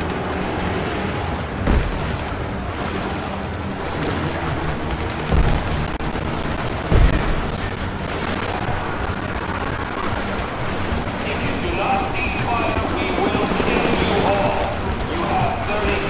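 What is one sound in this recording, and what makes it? Water splashes as someone wades and crawls through it.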